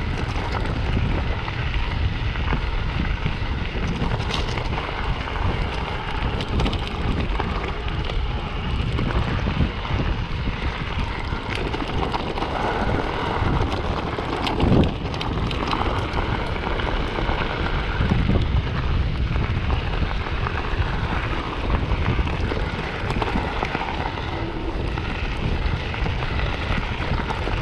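Bicycle tyres crunch steadily over loose gravel.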